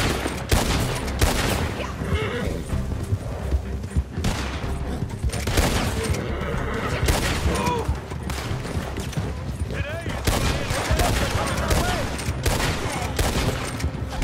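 Horse hooves pound steadily at a gallop.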